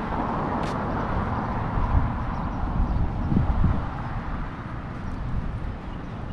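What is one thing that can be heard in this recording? Wind blows and buffets outdoors.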